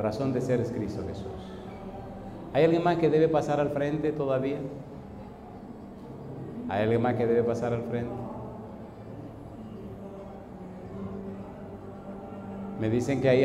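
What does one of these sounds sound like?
An elderly man speaks with fervour through a microphone and loudspeakers, in a large echoing hall.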